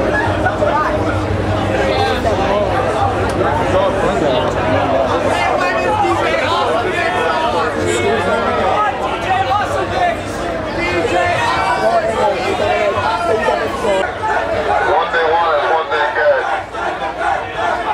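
A crowd of young people talks and shouts nearby.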